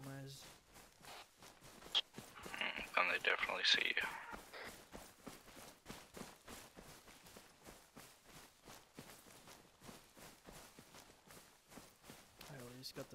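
Footsteps rustle steadily through undergrowth.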